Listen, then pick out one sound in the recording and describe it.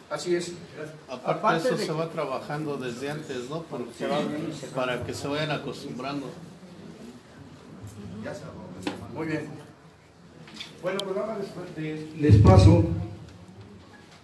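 A man speaks forcefully through a loudspeaker in an echoing room.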